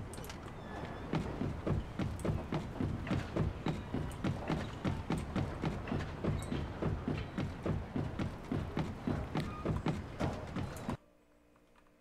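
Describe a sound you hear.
Footsteps run quickly across wooden boards.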